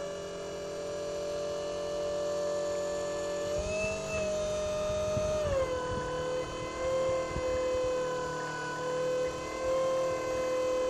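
A truck engine hums steadily nearby, its pitch rising briefly and then dropping.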